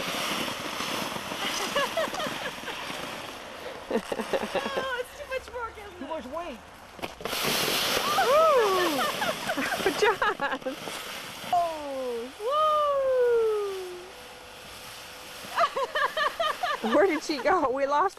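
A sled scrapes across snow.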